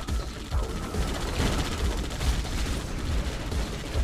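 A laser weapon zaps.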